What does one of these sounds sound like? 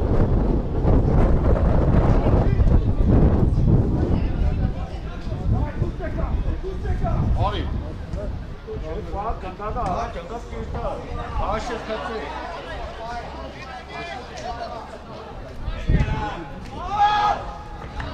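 Men shout to each other across an open outdoor field.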